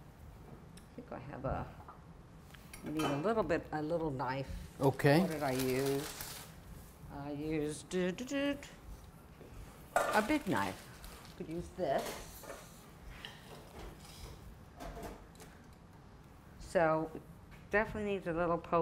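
A middle-aged woman talks with animation, close to a microphone.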